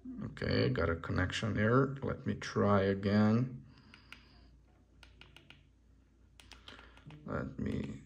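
Small plastic keys click softly under a thumb.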